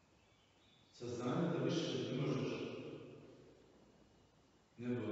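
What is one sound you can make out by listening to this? An elderly man reads aloud calmly in a large echoing room.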